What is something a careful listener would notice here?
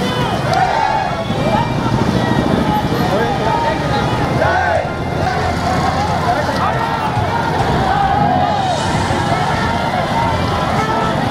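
A large crowd of men chants and shouts outdoors.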